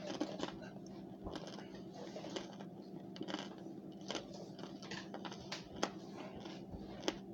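A woman chews and smacks a mouthful of powdery food close to a microphone.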